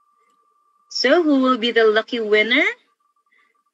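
A young woman speaks cheerfully over an online call.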